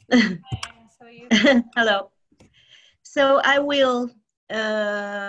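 A young woman talks and laughs over an online call.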